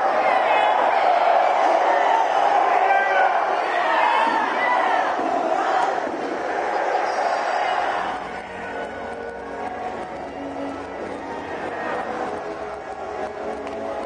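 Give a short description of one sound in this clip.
Many voices chatter and murmur in a large echoing hall.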